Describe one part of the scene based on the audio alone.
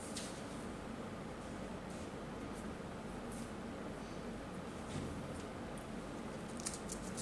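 Papers rustle under a man's hands.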